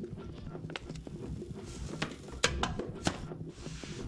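A bin lid swings and clatters shut.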